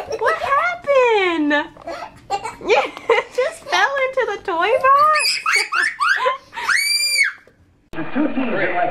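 A baby babbles and squeals up close.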